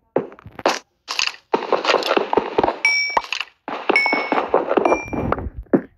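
A pickaxe chips and crunches into stone.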